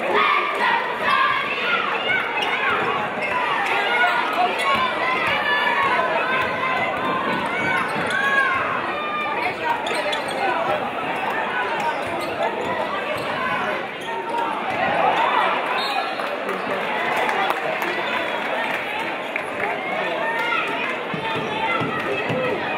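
A crowd chatters and cheers throughout, echoing in a large hall.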